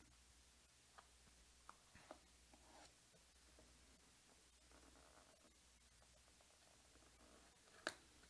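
A blade slits tape on a cardboard box.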